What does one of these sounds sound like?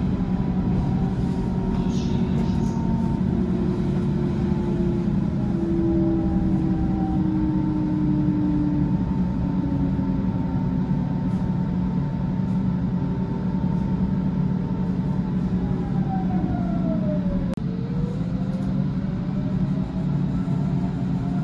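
An electric train motor whines, its pitch slowly sliding down and then up again.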